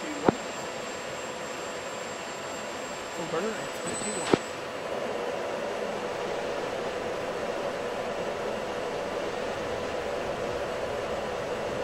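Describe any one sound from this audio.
A jet engine hums steadily and grows louder as the aircraft speeds down the runway.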